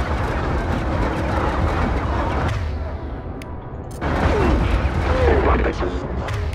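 Weapons fire in heavy, rumbling bursts.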